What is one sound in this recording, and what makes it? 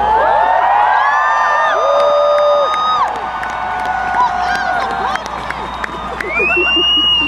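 People in a large crowd whistle shrilly.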